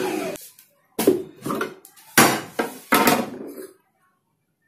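Plastic parts of a blender clatter and click.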